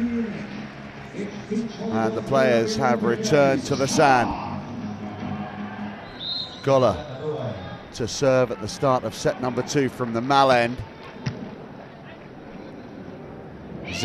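A large crowd murmurs in an open-air arena.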